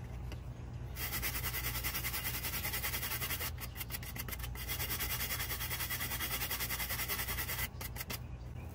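A wooden block rubs rapidly back and forth across a circuit board.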